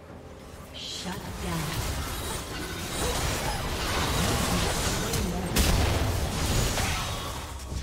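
Fantasy battle sound effects clash and burst in a video game.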